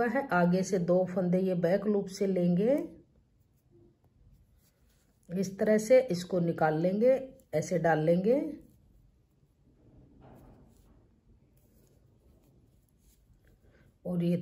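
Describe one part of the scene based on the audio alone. Knitting needles click softly against each other.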